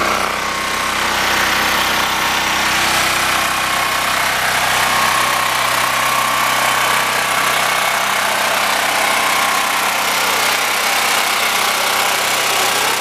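A generator engine runs steadily with a loud, even hum.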